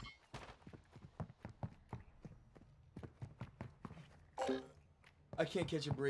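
Footsteps thud quickly on hard floors.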